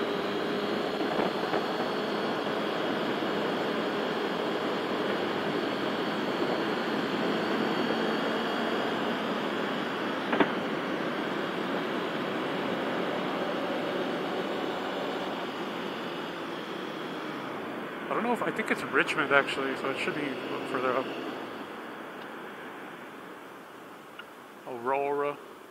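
A motorcycle engine hums steadily as it rides along, slowly quieting near the end.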